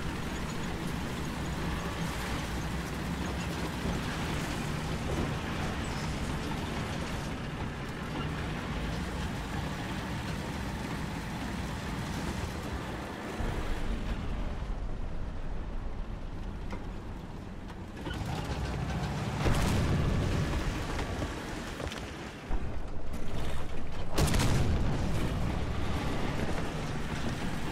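A tank's engine rumbles as it drives on its tracks.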